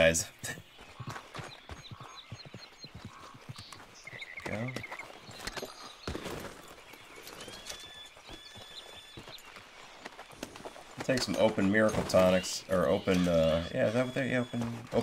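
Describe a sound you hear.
Footsteps tread on dirt.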